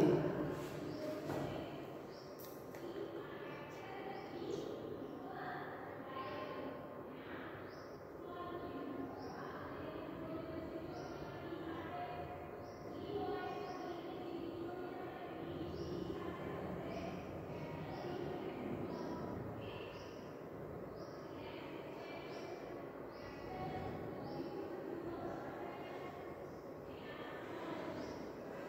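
A young woman speaks calmly and clearly, as if explaining, in a room with some echo.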